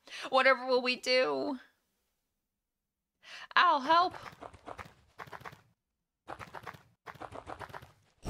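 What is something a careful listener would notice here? A young woman talks animatedly and playfully into a close microphone.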